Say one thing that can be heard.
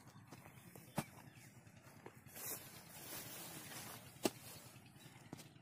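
Loose soil scrapes and crumbles.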